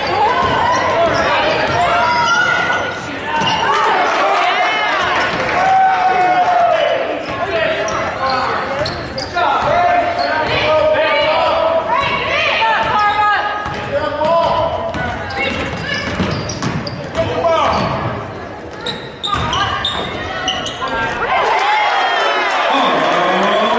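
Sneakers squeak sharply on a hard gym floor.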